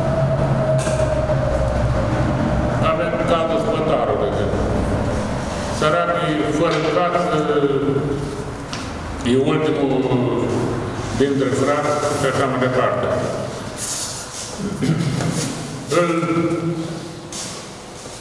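An elderly man speaks calmly through a face mask, close by.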